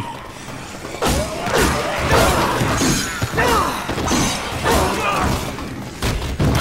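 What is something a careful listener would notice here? Heavy blows strike flesh with wet thuds.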